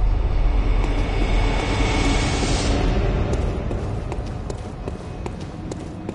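Footsteps crunch on stone and gravel.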